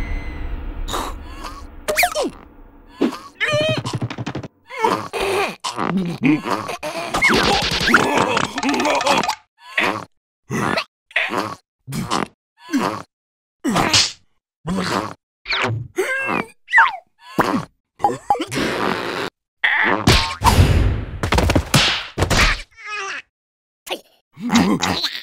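A squeaky, high cartoon voice babbles and squeals with animation.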